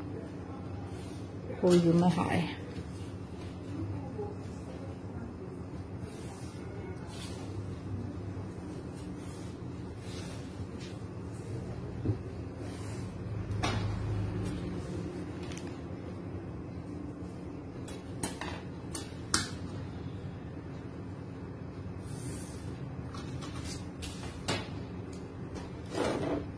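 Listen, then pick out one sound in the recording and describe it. Paper rustles and a metal ruler taps against it.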